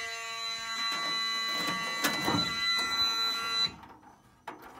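A fire alarm panel sounds a loud, steady electronic tone that cuts off abruptly.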